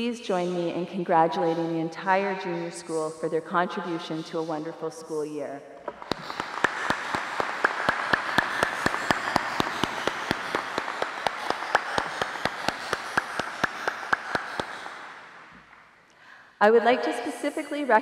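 A woman speaks calmly through a microphone in a large hall.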